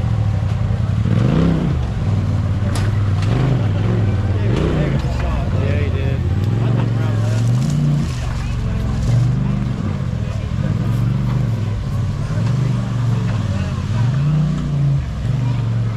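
An off-road buggy engine revs loudly, rising and falling.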